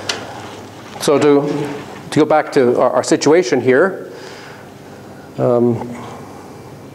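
An elderly man speaks calmly, as if lecturing, in a room with some echo.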